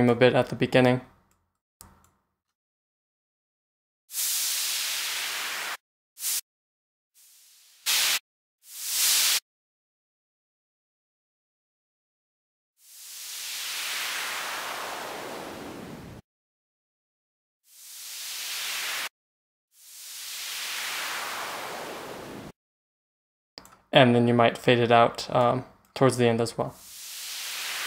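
A synthesizer plays short, punchy bass notes.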